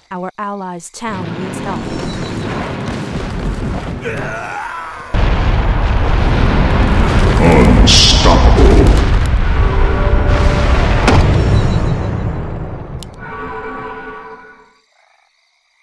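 Magic spells burst and crackle loudly amid clashing attacks.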